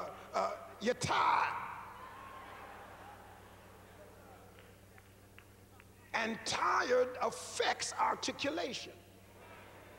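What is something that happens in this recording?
A man speaks with animation into a microphone in a large echoing hall.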